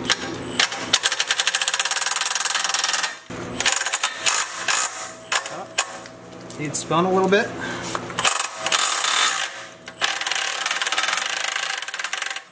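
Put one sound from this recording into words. A power tool whirrs.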